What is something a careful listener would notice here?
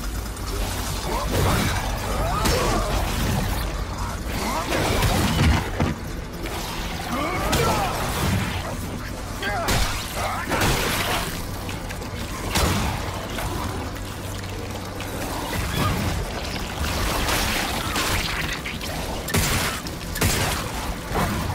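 A creature shrieks and snarls close by.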